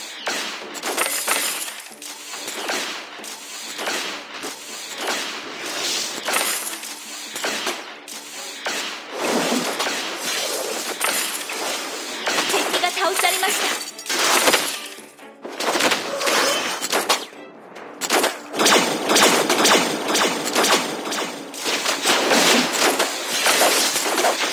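Game sword slashes and magic blasts clash in a fast fight.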